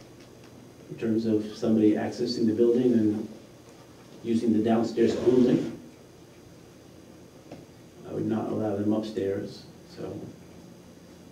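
A man speaks calmly through a microphone, in short bursts with pauses.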